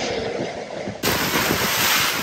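Gale-force wind roars across a sailboat's deck and rigging.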